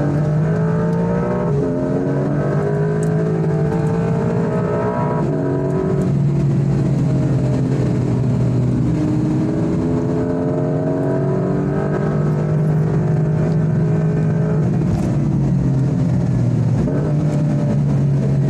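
A car engine roars loudly, its pitch rising and falling as the car accelerates and shifts gears.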